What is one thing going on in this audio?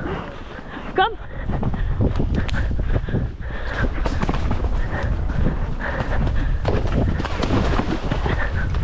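A horse's hooves pound rhythmically at a gallop.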